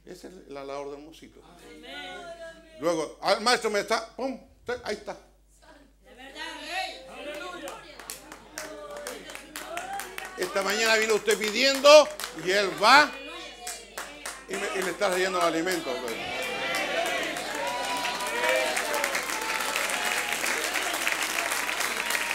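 An older man speaks with animation to an audience, heard through a microphone.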